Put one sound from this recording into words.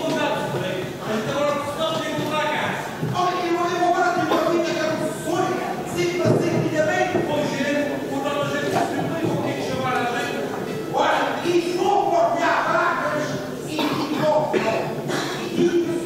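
Guitars strum along with the singing.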